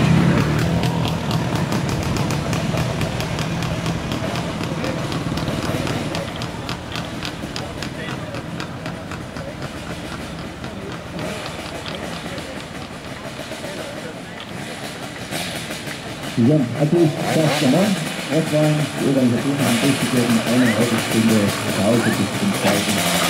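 Old motorcycle engines putter and pop as they ride slowly closer.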